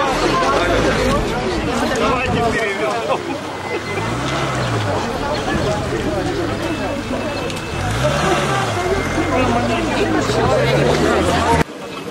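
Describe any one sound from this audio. A crowd of men and women talk over one another outdoors.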